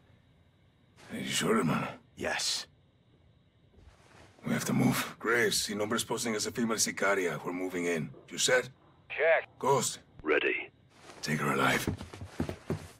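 A man speaks calmly and closely through a microphone.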